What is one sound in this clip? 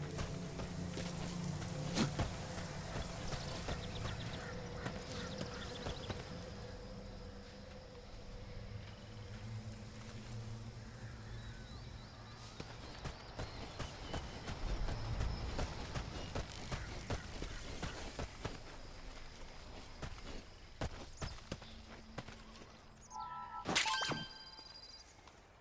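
Footsteps crunch quickly over gravel and dirt.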